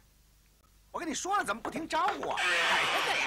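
A second man answers loudly.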